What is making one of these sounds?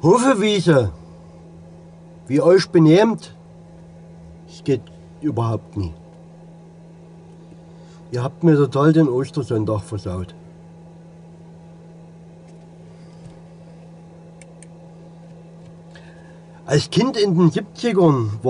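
A middle-aged man talks calmly and close by, in short bursts with pauses.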